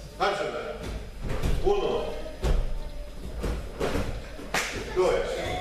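Bare feet thump across a padded floor.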